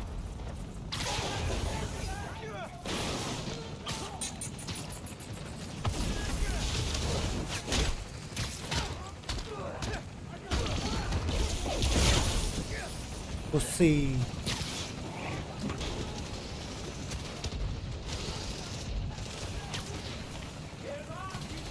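Punches and thuds land in a fast fight.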